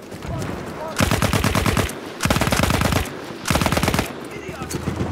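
A submachine gun fires in loud rapid bursts close by.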